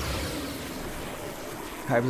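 A large explosion roars.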